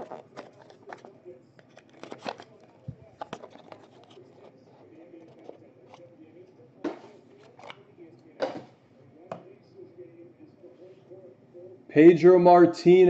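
Cardboard packs knock and slide against each other in hands.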